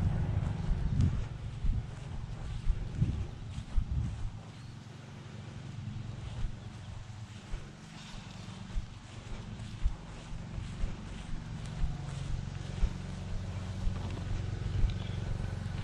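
Footsteps brush through short grass.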